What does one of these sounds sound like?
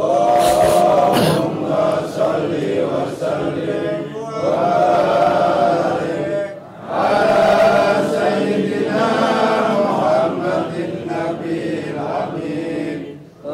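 An elderly man chants a recitation in a melodic voice through a microphone and loudspeaker.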